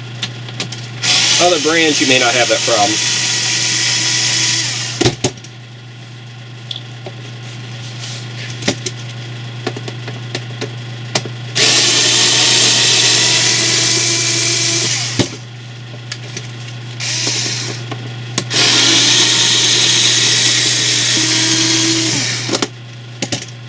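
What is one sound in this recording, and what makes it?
An electric screwdriver whirs in short bursts.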